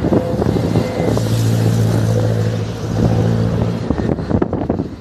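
A heavy vehicle's engine rumbles as it passes.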